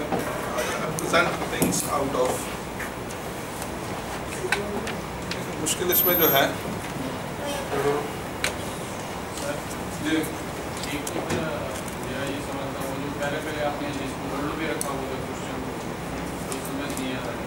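A man speaks calmly in a room with a slight echo.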